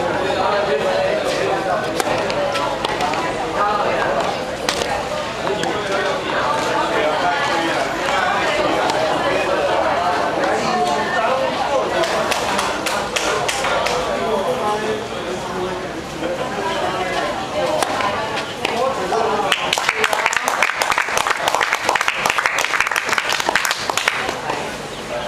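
A tennis racket strikes a ball again and again.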